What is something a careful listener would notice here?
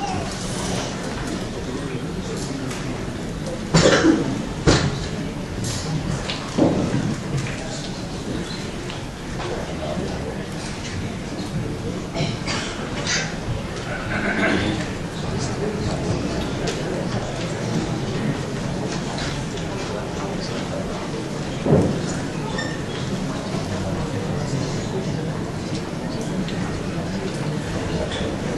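Actors speak on a stage, heard from the audience in a large hall.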